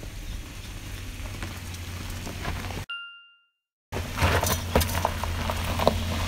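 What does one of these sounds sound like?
A trailer rattles and clanks behind a van.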